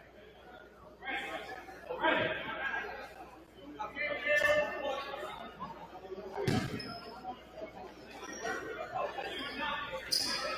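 Players and spectators call out in a large echoing gym.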